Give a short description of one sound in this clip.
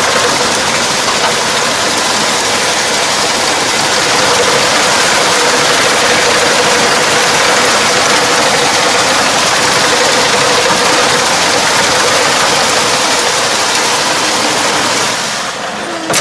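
A rotary tiller churns through wet mud.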